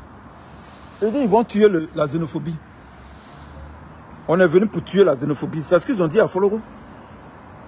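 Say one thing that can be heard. A middle-aged man speaks close by, in a calm, low voice.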